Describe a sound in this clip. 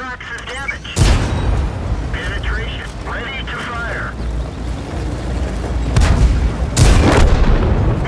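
A shell explodes on impact.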